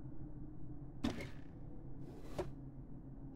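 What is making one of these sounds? A wooden drawer swings open with a knock and a click.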